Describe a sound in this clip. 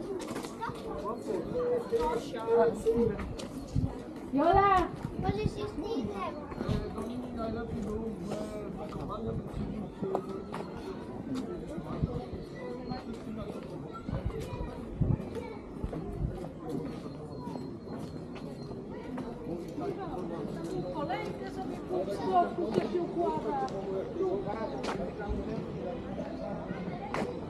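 People talk in a lively outdoor crowd, with voices near and far.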